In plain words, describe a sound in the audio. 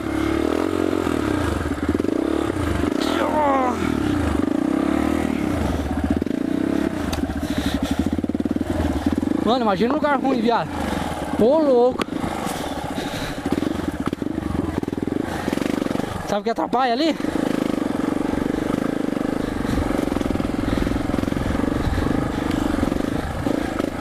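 A single-cylinder four-stroke trail motorcycle rides along a dirt trail, its engine rising and falling with the throttle.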